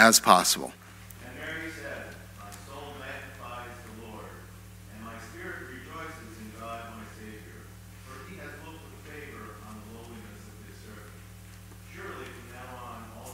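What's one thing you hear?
An elderly man reads aloud calmly, heard from a distance in an echoing room.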